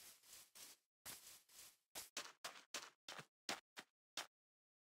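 Footsteps crunch on sand, quick and then sharper and spaced out.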